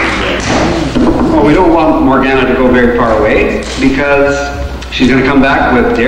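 An elderly man speaks into a microphone over a loudspeaker, echoing in a hall.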